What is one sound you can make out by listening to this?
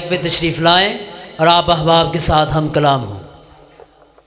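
A young man chants melodically into a microphone, amplified and close.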